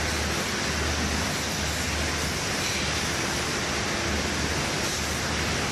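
Rows of machines whir and rattle steadily, filling a large hall with a loud even roar.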